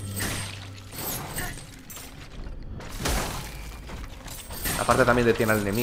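A blade swings and strikes.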